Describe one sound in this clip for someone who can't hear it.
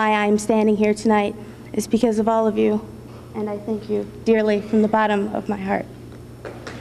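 A young woman speaks into a microphone over a loudspeaker in an echoing hall.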